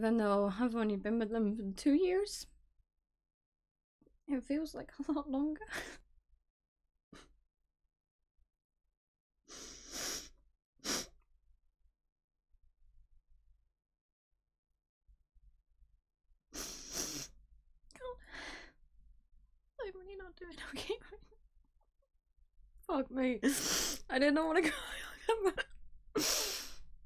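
A young woman talks with animation close to a microphone, with pauses.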